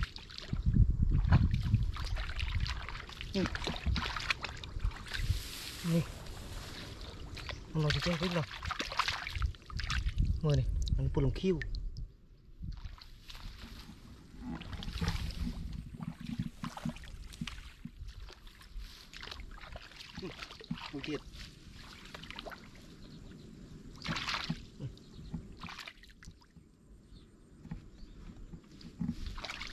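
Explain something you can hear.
Water splashes as a man wades through shallow water.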